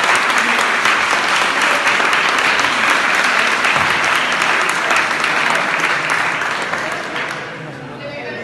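A crowd claps and cheers loudly in an echoing hall.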